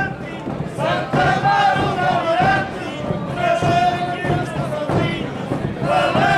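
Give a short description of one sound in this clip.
Several large bass drums are beaten with heavy, booming strokes.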